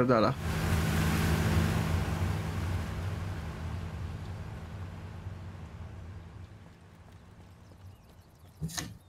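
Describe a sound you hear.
A truck engine rumbles past and fades away.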